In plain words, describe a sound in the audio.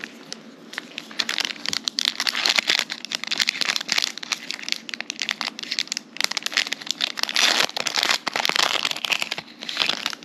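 Hands tear open a crinkling foil trading card pack.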